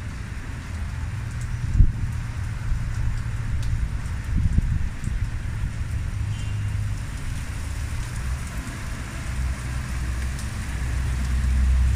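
A heavy truck engine rumbles low nearby.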